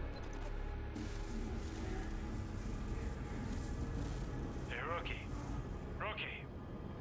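Static hisses steadily from a phone.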